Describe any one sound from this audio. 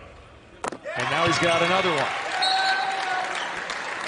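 A crowd in a large echoing hall cheers.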